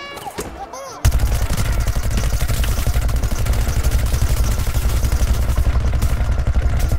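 A video game gatling gun fires in a rapid stream.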